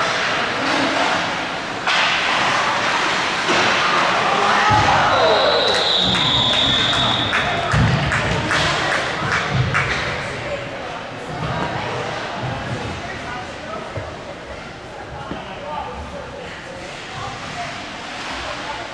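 A crowd cheers and shouts in a large echoing rink.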